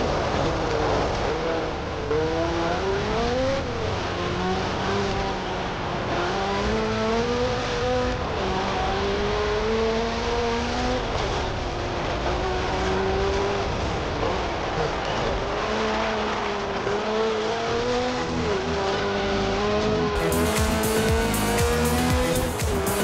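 A racing car engine revs and roars, rising and falling in pitch as it shifts gears.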